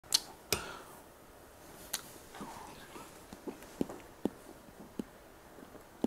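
A spoon clinks lightly against a cup.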